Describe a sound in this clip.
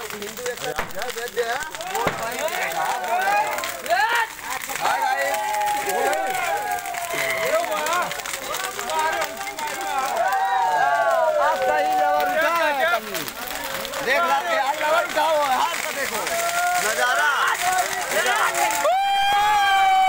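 A crowd of men talks and shouts loudly nearby.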